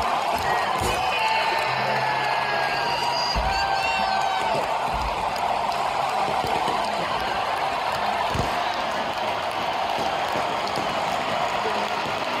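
A large stadium crowd cheers and roars loudly throughout.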